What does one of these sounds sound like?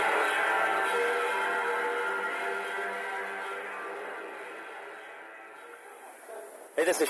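A bass guitar plays a sustained fading chord.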